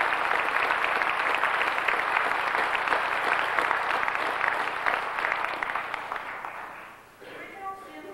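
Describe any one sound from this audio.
An audience applauds in a large hall, then fades.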